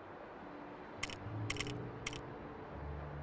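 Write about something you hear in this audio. Game menu selection clicks ring out in quick bursts.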